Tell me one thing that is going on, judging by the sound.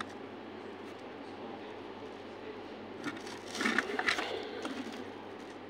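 A screwdriver clicks and scrapes against metal screw terminals.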